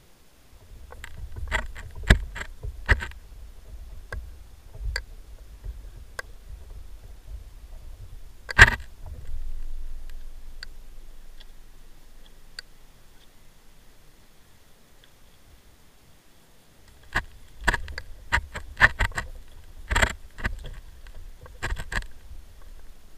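Metal buckles and fittings click and knock as a person climbs into a small open aircraft.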